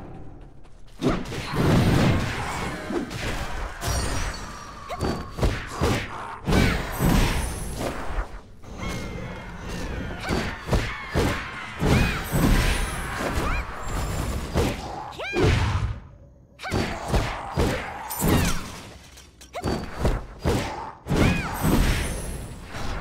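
Sword blows and magic blasts clash and crack in a fierce fight.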